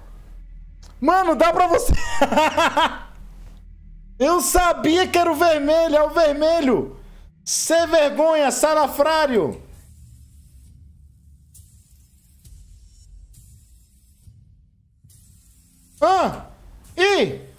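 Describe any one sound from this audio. A young man talks loudly with animation into a close microphone.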